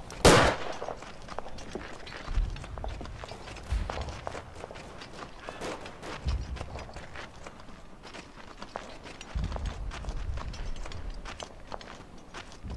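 Footsteps crunch on dirt at a quick pace.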